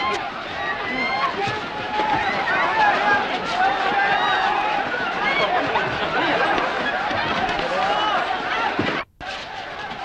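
A crowd of men shouts and clamors close by.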